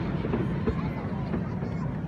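Fireworks boom and crackle in the distance.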